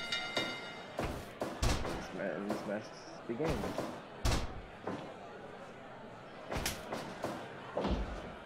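Heavy thuds and slaps land as wrestlers hit each other and the mat.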